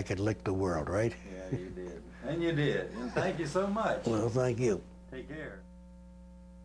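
An elderly man talks and laughs close to a microphone.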